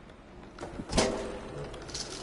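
A cat lands with a soft thud after a jump.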